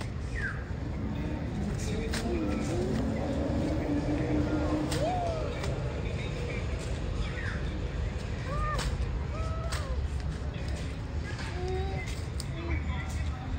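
A small child's footsteps crunch on dry leaves.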